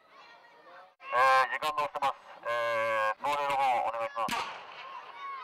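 A man shouts through a megaphone, loud and distorted.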